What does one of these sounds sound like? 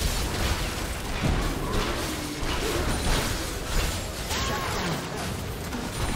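Spell effects whoosh and crackle in a fast fight.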